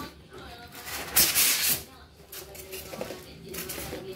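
Foam packing blocks squeak and rub as they are pulled out.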